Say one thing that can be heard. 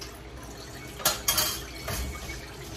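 A metal frying pan knocks against a gas stove grate.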